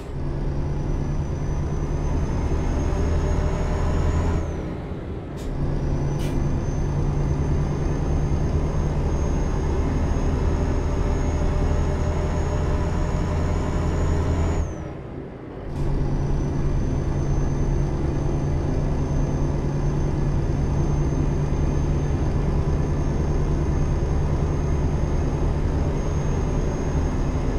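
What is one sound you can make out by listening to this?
A diesel truck engine drones at cruising speed.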